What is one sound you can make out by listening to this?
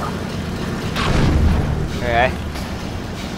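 A gravity gun hums and zaps as it lifts a buggy.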